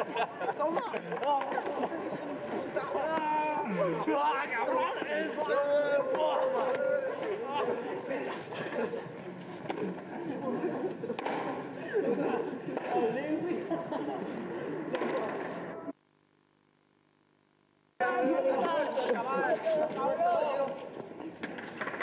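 A crowd of young men shout and talk excitedly close by.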